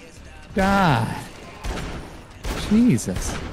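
A fire axe strikes flesh with heavy thuds.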